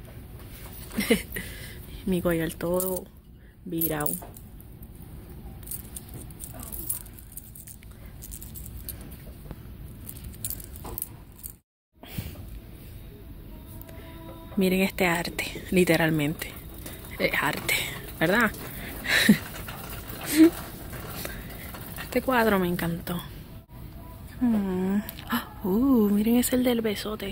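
A young woman talks close to the microphone in a casual, chatty way.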